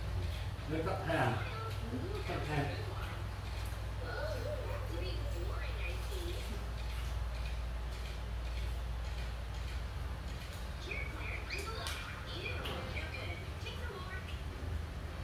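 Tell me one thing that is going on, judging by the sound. Children talk and call out nearby in a small room.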